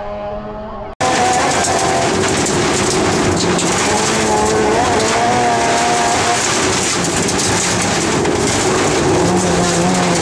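Tyres hiss and rumble over a snowy road.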